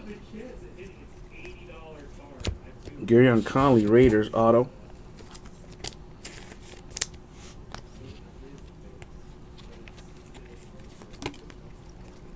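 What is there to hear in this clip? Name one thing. Trading cards rustle and click softly as they are flipped through by hand.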